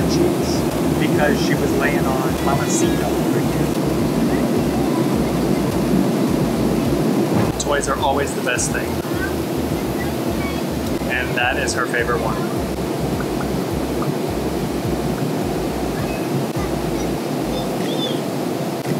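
A steady low roar of aircraft engines drones on.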